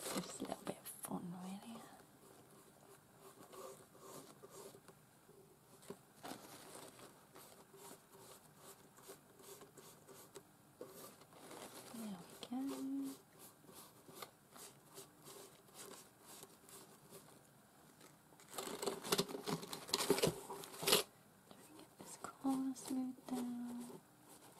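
A brush dabs and scrapes softly on paper.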